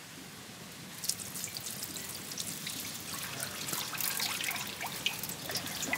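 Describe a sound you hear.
Water pours from a clay pot and splashes into a large pot.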